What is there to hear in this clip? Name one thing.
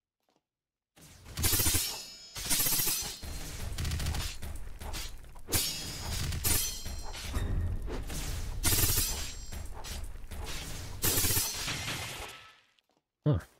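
Magic blasts crackle and boom.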